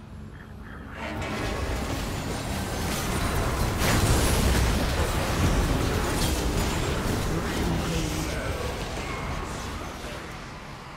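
Magic spell effects crackle and boom during a video game battle.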